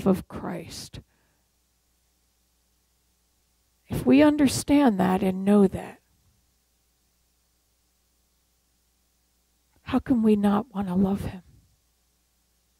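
An elderly woman speaks calmly through a microphone, pausing between phrases.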